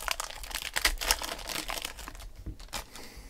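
Plastic wrapping crinkles as hands tear it open.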